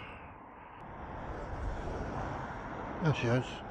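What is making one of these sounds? A bus passes close by.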